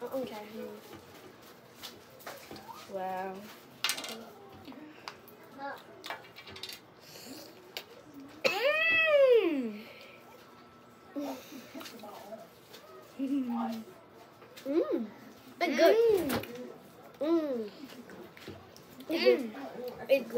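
Young girls talk and exclaim with animation close by.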